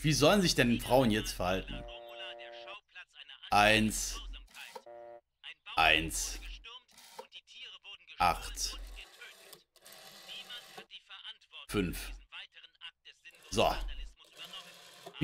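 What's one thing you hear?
A telephone dial clicks and whirs as it turns.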